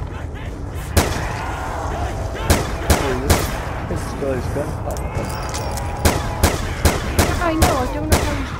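Gunshots fire in sharp single blasts.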